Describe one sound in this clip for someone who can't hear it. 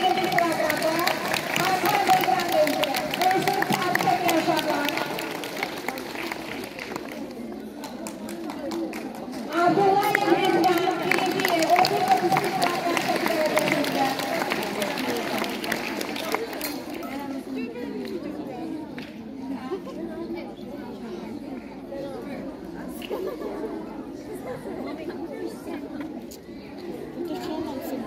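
Several women talk together outdoors in a crowd.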